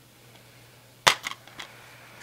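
A plastic game case snaps open with a click.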